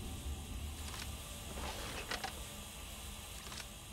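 A forklift engine hums and idles.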